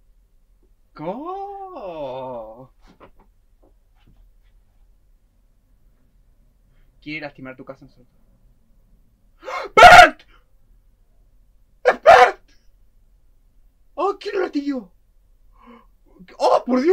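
A young man speaks close to a microphone with animation, exclaiming loudly at times.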